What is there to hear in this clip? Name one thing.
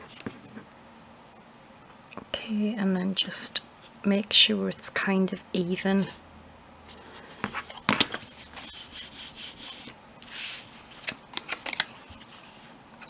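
Stiff card rustles and creases as it is folded by hand.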